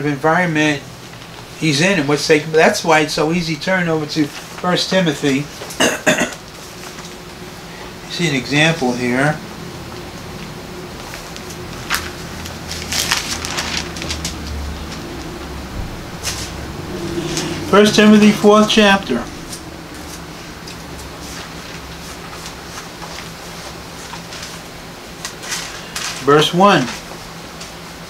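An elderly man speaks calmly and close by, with pauses.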